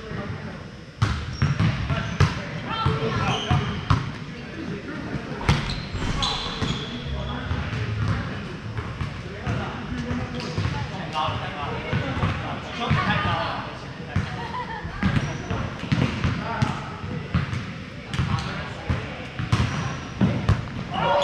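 A volleyball is hit with sharp slaps that echo in a large hall.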